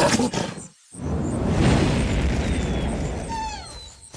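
A fiery blast roars.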